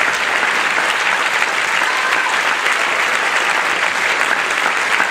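A brass band plays loudly in a large hall.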